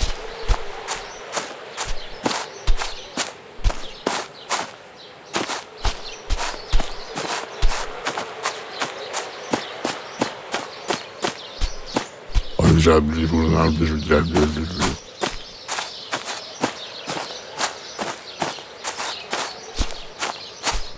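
Footsteps crunch steadily through dry grass and undergrowth.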